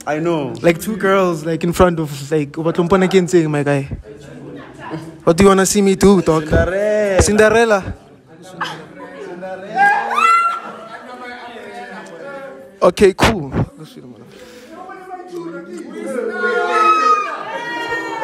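A group of young people cheer and laugh nearby.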